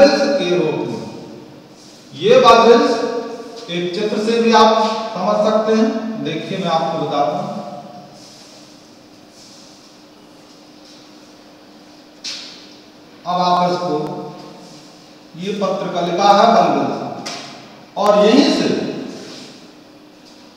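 A man speaks loudly, explaining in short bursts.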